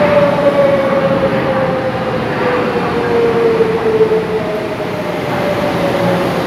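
A train rolls along the tracks with a steady rumble.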